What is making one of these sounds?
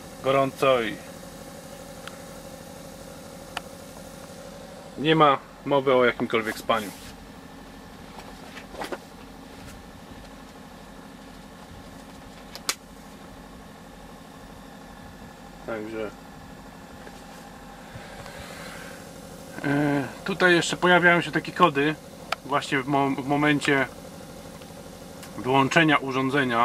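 An air conditioner hums steadily.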